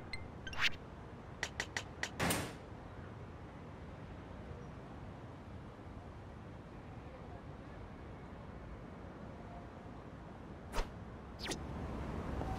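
Menu selection clicks sound in quick succession.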